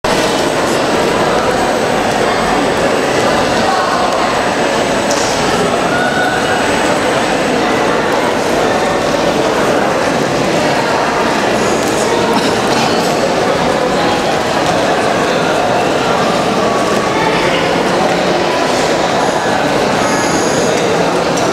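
A group of young women sings together through loudspeakers in a large echoing hall.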